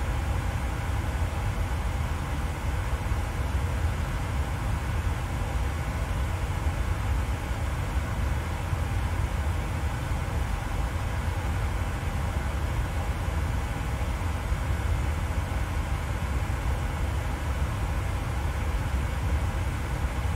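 A steady low engine hum drones.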